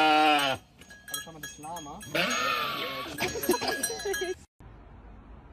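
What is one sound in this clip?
A sheep bleats loudly up close.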